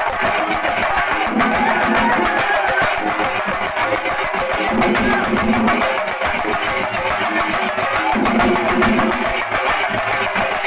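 Many drums beat fast and loud in a packed crowd.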